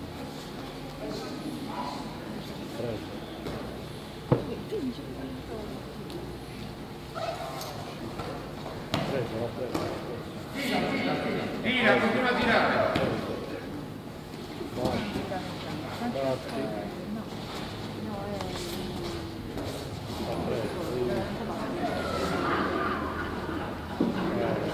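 Judo fighters grapple and scuffle on a mat.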